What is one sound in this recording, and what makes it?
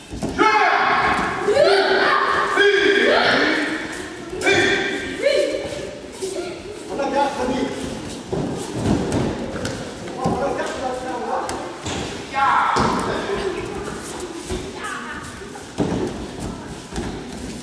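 Bare feet shuffle and thump on soft mats.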